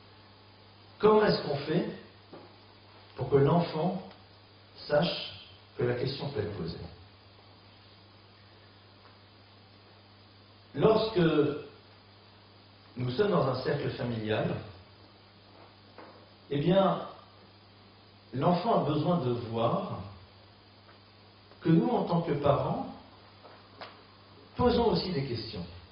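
A middle-aged man speaks into a microphone in measured bursts with pauses.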